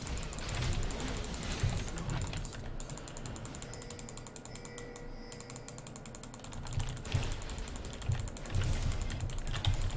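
Fantasy battle sound effects crackle and whoosh as spells are cast.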